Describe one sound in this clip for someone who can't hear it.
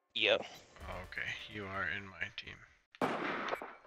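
A young man speaks with animation close to a headset microphone.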